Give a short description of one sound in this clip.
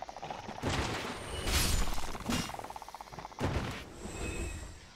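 A sword slashes into a creature with heavy wet thuds.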